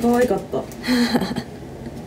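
A young woman laughs brightly close by.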